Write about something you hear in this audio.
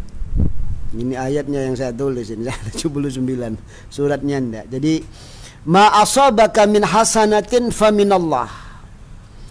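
A middle-aged man reads aloud in a chanting voice close to a microphone.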